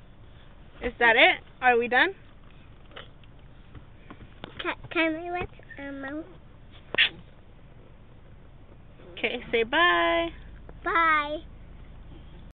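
A little girl talks and squeals in a high, excited voice close by.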